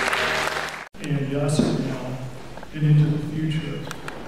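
An older man reads aloud into a microphone in a large echoing room.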